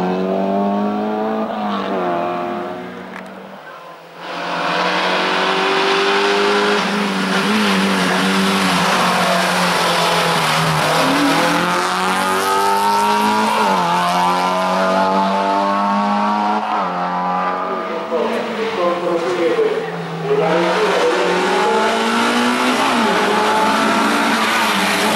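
A rally car engine revs hard and rises in pitch through gear changes as it climbs past.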